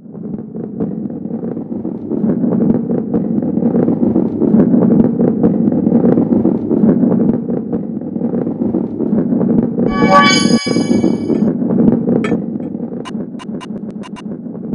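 A ball rolls with a steady rumble along a wooden track.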